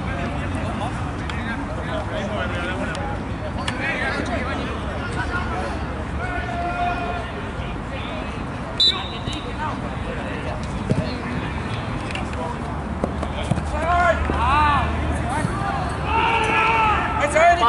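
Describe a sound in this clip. Young men shout to each other across an outdoor football pitch.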